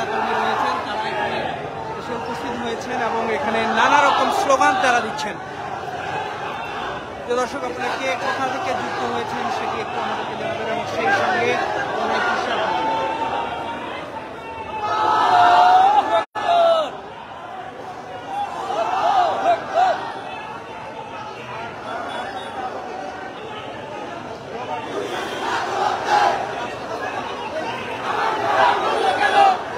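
A large crowd of young men chants and shouts loudly close by.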